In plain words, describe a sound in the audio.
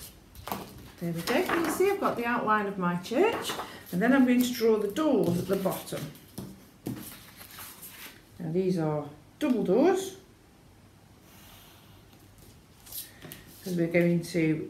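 A woman speaks calmly and closely.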